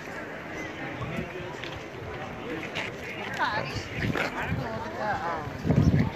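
Several people chat outdoors in the background.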